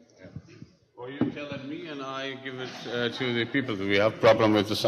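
An elderly man speaks with animation into a microphone, heard through loudspeakers in a large hall.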